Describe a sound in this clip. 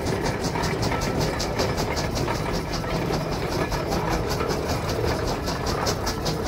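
A steam engine chuffs rapidly and rhythmically.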